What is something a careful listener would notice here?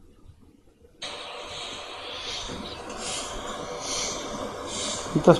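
A phone plays a recording with a thin, hissy sound.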